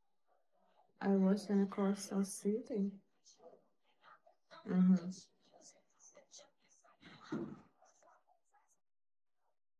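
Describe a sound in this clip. A young woman speaks close to the microphone, with animation.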